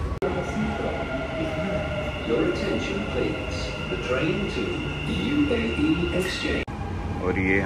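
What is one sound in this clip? A train's motors whine steadily as the train pulls in.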